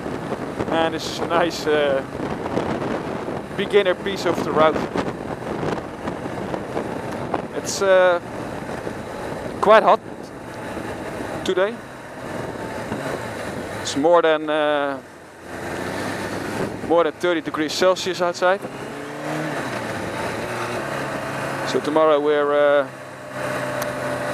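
A motorcycle engine drones steadily and revs up and down.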